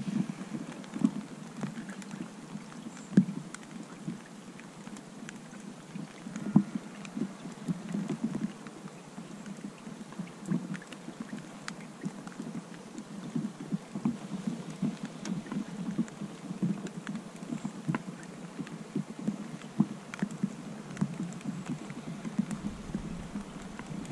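Rain patters on a waterproof hood close by.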